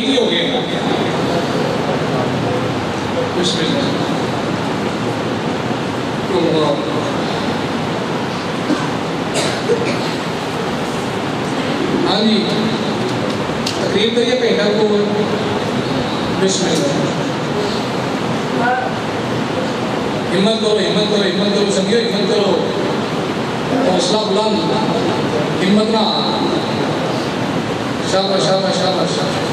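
A young man speaks with fervour through a microphone and loudspeakers, echoing in a hard room.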